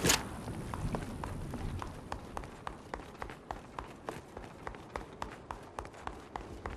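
Footsteps patter quickly and evenly on a stone floor.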